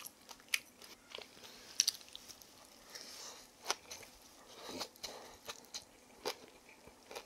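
A woman chews food wetly and smacks her lips.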